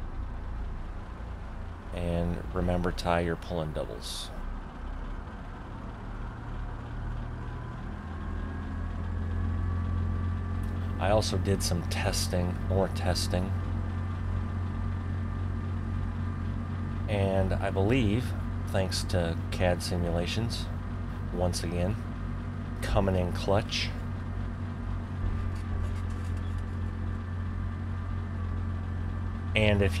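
A truck engine rumbles steadily at a low idle, growing louder as the truck pulls away.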